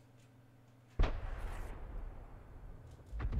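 A tank cannon fires with a deep, rumbling boom.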